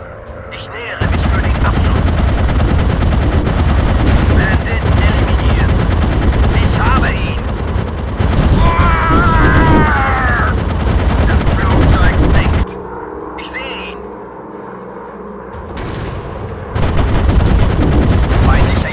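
Machine guns fire in long rapid bursts.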